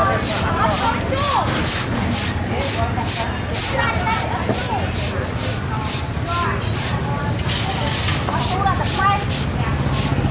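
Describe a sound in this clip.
A hand grater shreds green papaya in quick, rhythmic strokes.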